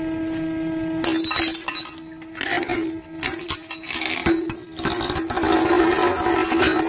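Glass cracks, crunches and shatters under heavy pressure.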